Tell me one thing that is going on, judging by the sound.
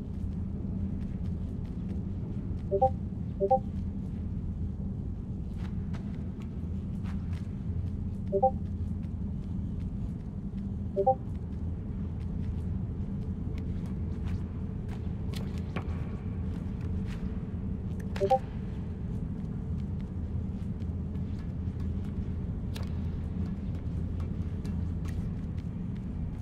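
Small footsteps patter softly on a hard surface.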